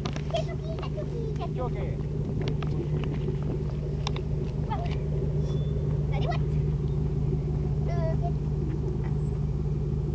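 A car engine rumbles steadily nearby.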